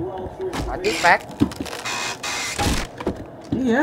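A wooden crate creaks as it is pried open.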